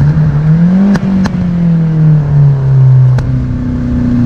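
A gear lever clicks sharply during shifts.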